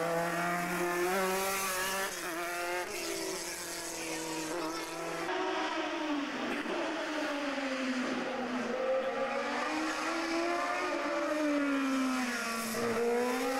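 A racing car engine roars and revs up and down as it speeds past.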